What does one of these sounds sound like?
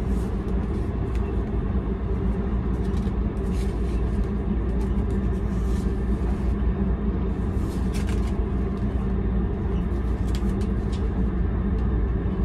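Paper rustles as a menu is handled.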